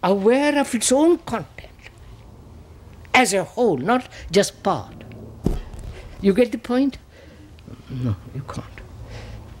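An elderly man speaks with emphasis into a microphone, in short bursts with pauses.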